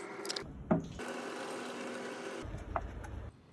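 Water pours from a cup into a metal sink.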